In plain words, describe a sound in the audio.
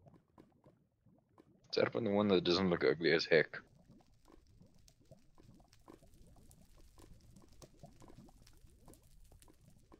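Lava bubbles and pops softly.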